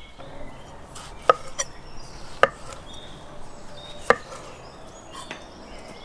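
A knife chops sharply against a wooden board.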